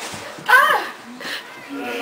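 A little girl steps down carpeted stairs.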